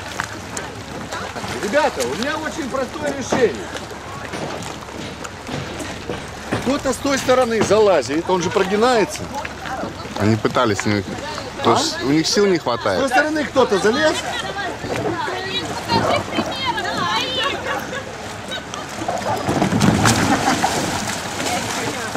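Water splashes around swimmers.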